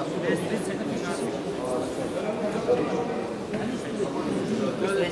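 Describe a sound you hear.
Several men talk at once in a large echoing hall.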